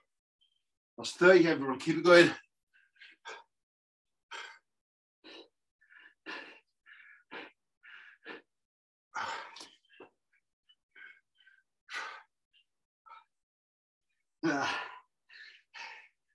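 A man exhales and grunts loudly with effort.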